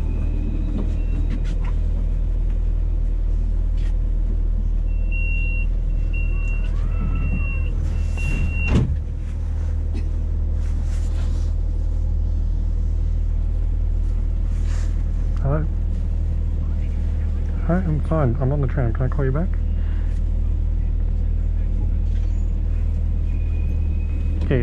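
A tram rolls past close by with a steady low rumble.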